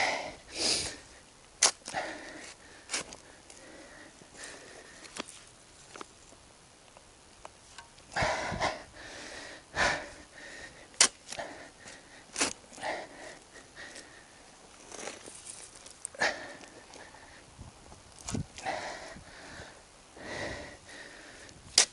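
A shovel scrapes and crunches into dry soil outdoors.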